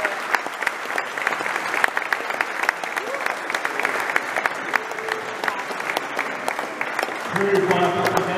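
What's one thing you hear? An audience applauds in a large echoing hall.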